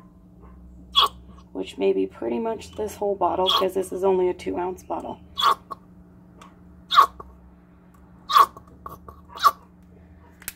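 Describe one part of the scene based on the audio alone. A plastic bottle knocks and clicks against a plastic cup.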